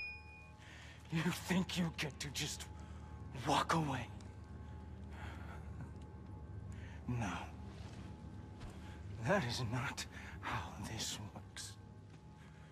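A man speaks with a sneer.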